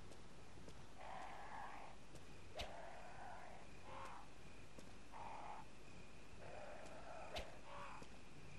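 Footsteps fall.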